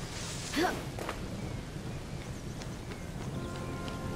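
Footsteps patter on stone paving.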